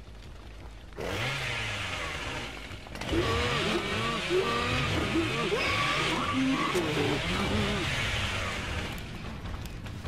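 A chainsaw revs up and roars loudly, its pitch rising and falling.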